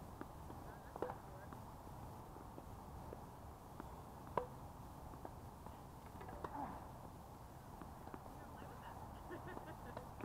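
Tennis balls are struck with rackets, with sharp pops outdoors.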